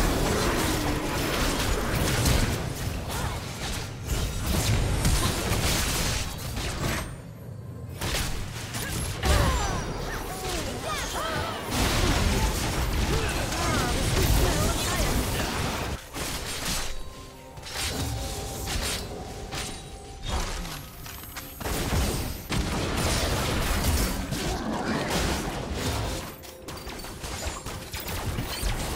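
Spell blasts, hits and explosions clash rapidly in a game battle.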